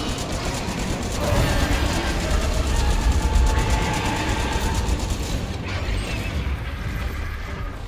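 A huge beast growls and roars nearby.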